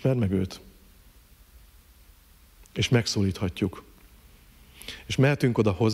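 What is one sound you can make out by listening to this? A middle-aged man speaks calmly into a microphone, in pauses.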